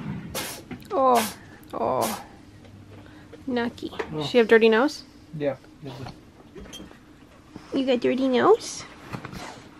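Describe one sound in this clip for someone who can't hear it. A cat meows loudly several times, close by.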